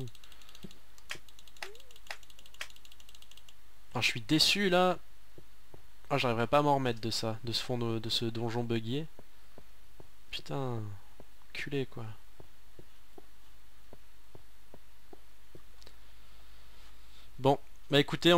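Footsteps tap lightly on a stone floor.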